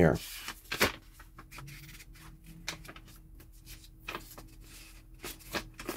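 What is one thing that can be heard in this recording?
Paper rustles and crinkles as a leaflet is unfolded close by.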